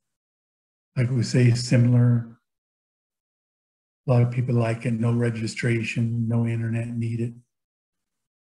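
A middle-aged man speaks calmly through a microphone on an online call.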